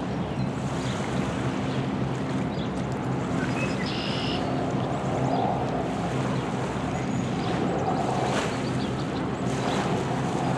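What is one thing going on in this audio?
Small waves lap gently against a rocky shore.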